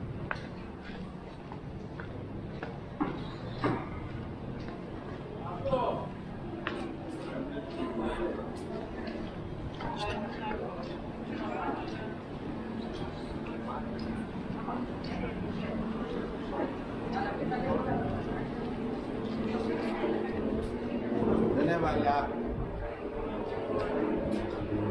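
Men and women chatter nearby, outdoors in a busy street.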